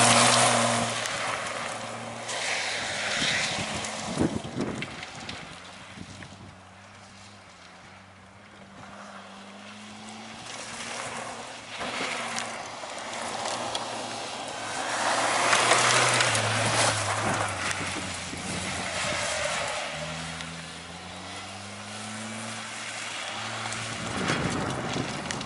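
Gravel and dirt spray from spinning tyres.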